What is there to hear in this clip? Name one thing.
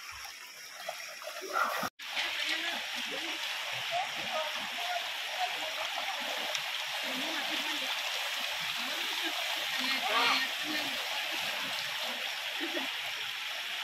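A shallow river flows and babbles steadily.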